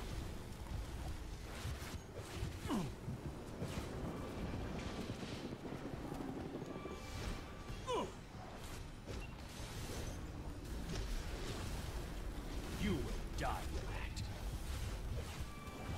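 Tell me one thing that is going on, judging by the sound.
Video game combat effects crackle and clash.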